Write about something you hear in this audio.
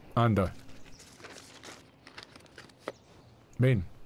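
Loose papers rustle and slide on pavement.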